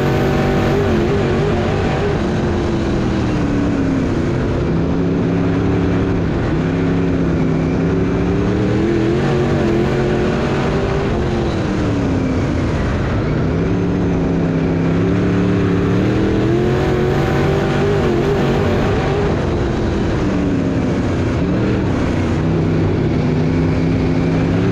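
Tyres rumble over a dirt track.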